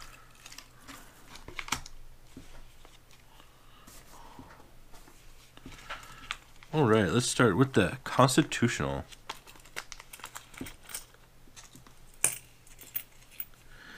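A plastic bag crinkles as hands pull at it.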